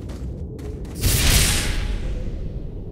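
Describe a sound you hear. A menu opens with a loud whoosh.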